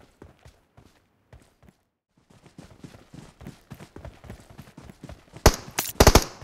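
Footsteps thud quickly across grass.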